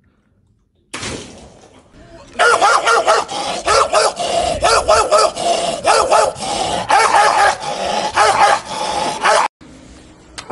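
A young man sings loudly and with strain, close by.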